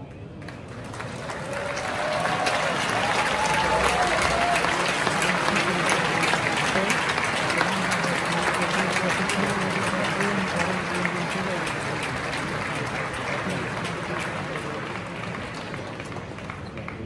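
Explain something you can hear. A crowd applauds and cheers loudly in a large echoing hall.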